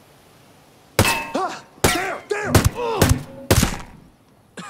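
A scoped rifle fires several shots.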